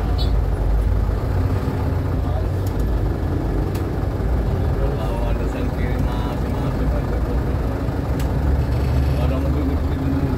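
Motorbike engines buzz close by in heavy traffic.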